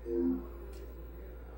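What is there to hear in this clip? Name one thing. A short electronic chime plays through a television speaker.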